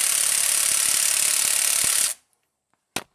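A cordless impact wrench whirs loudly.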